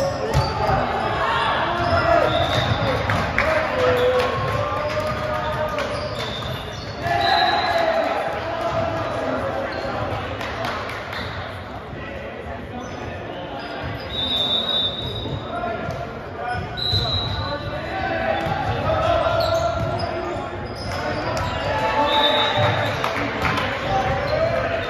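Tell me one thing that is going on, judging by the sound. A volleyball is struck with sharp smacks.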